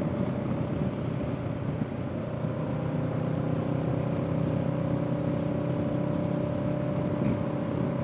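A parallel-twin motorcycle engine hums while cruising.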